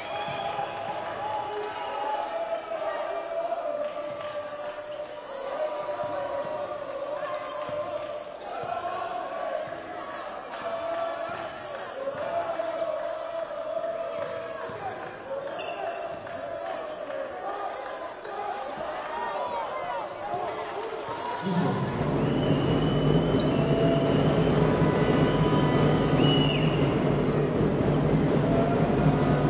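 Sneakers squeak on a wooden court in an echoing hall.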